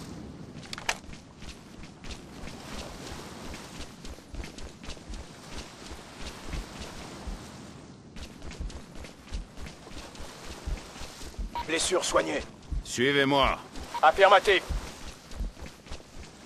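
Footsteps thud steadily on hard ground at a running pace.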